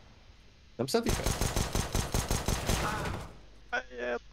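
A pistol fires rapid shots.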